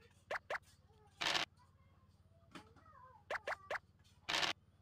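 Game pieces tap as they hop across a board.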